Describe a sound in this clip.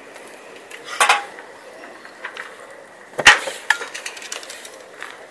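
A tool scrapes and knocks against concrete nearby.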